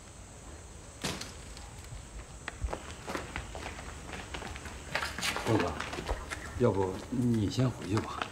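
Footsteps scuff on stone as a group walks.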